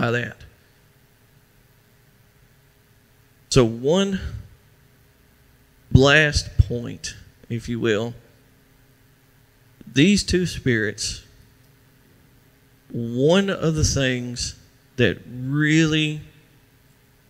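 A middle-aged man speaks calmly and deliberately, with long pauses.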